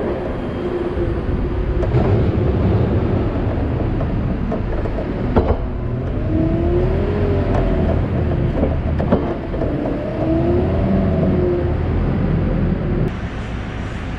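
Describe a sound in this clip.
A loader's diesel engine rumbles loudly close by.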